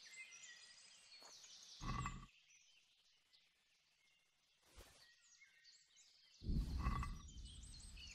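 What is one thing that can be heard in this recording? A wooden bow creaks as its string is held drawn.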